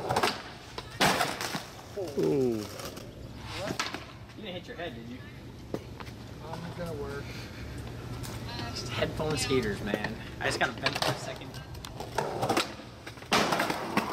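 Skateboard wheels roll and clatter on concrete.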